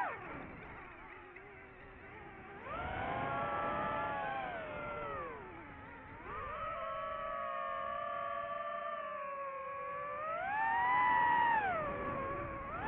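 A drone's motors whine up close, rising and falling in pitch.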